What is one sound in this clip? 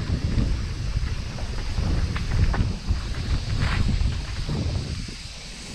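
Twigs and dry leaves crackle under bicycle tyres.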